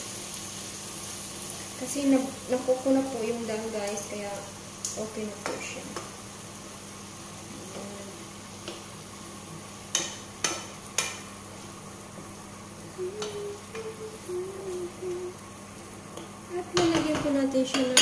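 A wooden spatula stirs and scrapes lentils in a frying pan.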